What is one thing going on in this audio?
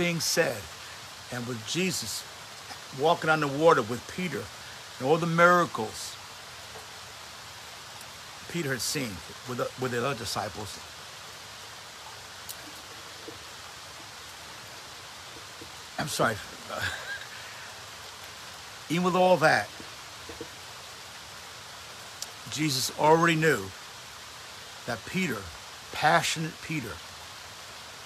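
An older man talks calmly and close by, in short bursts with pauses.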